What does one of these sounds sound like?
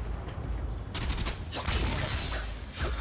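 An energy blast crackles and bursts.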